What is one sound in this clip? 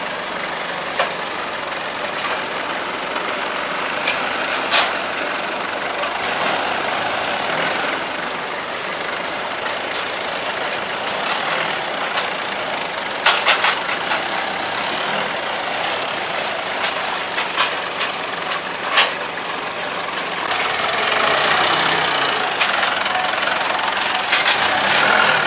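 Metal clanks as a forklift handles its load.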